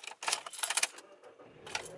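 A key scrapes and clicks in a car's ignition.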